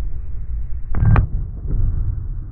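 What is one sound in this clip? A loud explosive bang bursts outdoors and echoes briefly.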